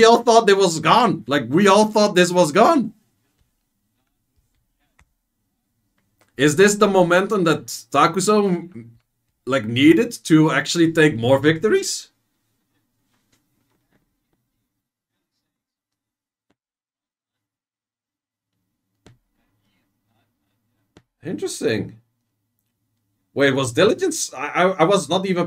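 A young man talks casually and with animation close to a microphone, in bursts with pauses.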